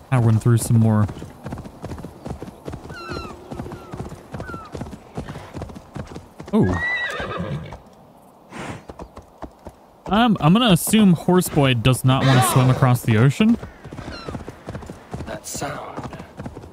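Horse hooves thud steadily on grass.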